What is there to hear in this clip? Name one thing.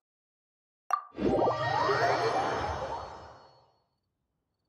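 A whooshing teleport effect sounds and fades.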